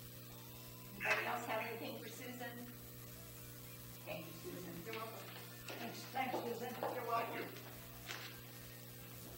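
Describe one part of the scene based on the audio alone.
A woman speaks calmly, heard from a distance.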